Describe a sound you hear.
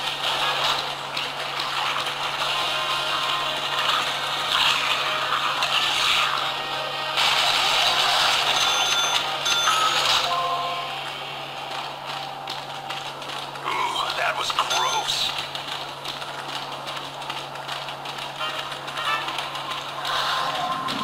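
Rapid gunfire and game sound effects play loudly from a small phone speaker.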